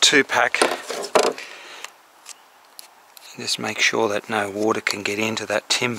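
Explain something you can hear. A scraper scrapes on painted wood.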